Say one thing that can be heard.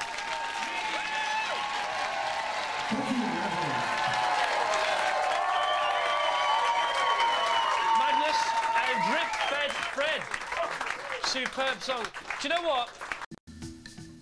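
An audience claps and cheers.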